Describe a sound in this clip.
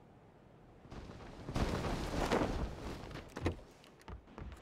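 Wind rushes past a parachute.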